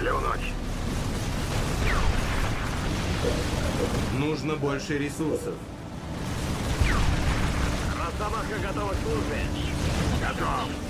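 Guns fire rapidly in a battle.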